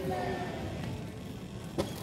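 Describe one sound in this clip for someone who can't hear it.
A volleyball is struck with a sharp smack.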